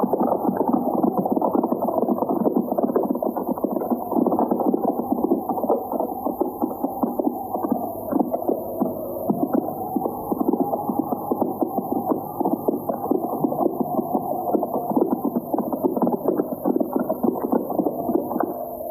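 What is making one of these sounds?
Horses walk over dry ground, hooves thudding.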